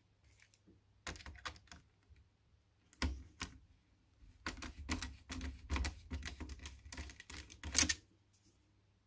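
A screwdriver clicks and scrapes against small metal screws.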